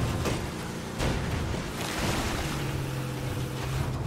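Tyres splash through shallow water.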